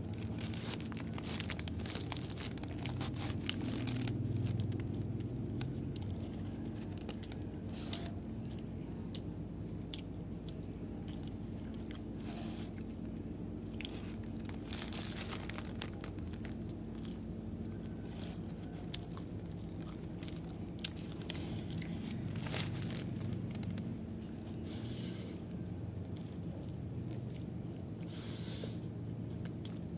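A young man chews food noisily close by.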